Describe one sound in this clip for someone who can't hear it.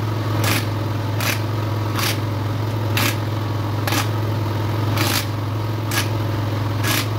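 A metal tool clanks against a wheel rim.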